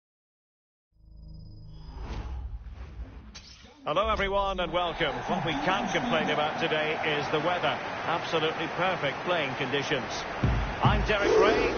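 A large crowd cheers and roars in a stadium.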